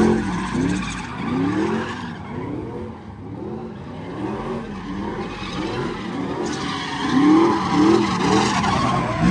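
A car engine revs hard, rising and falling over and over.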